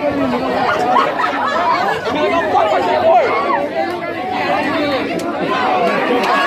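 A large crowd of teenagers shouts and chatters excitedly nearby, outdoors.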